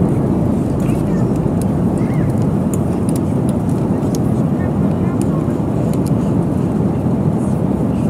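A steady low roar of jet engines fills an airplane cabin.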